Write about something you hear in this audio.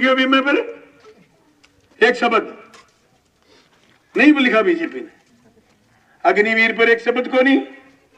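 A man shouts in short bursts through a loudspeaker, echoing outdoors.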